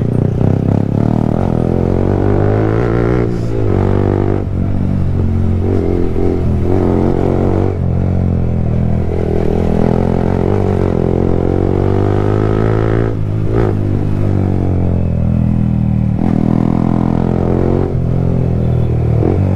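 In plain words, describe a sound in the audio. A motorcycle engine hums loudly close by, its pitch rising and falling as it revs.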